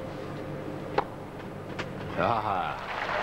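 A tennis ball is struck with a racket with a sharp pop.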